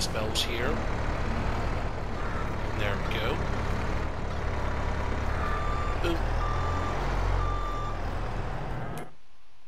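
A diesel engine of a loader rumbles steadily.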